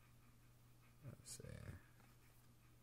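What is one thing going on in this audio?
Trading cards softly rustle and slide against each other.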